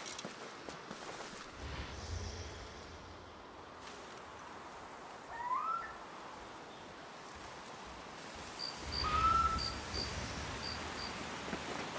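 Dry grass rustles as someone moves through it.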